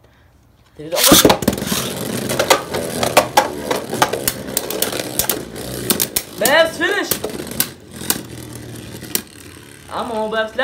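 Spinning tops clash and clatter against each other and the plastic walls.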